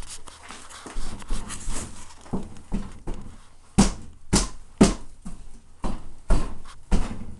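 A man bangs a crowbar hard against a wall.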